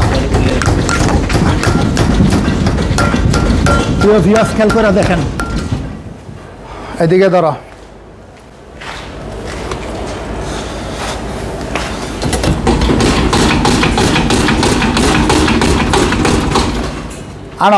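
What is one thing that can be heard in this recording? Metal parts of a vehicle rattle and clank as a man handles them.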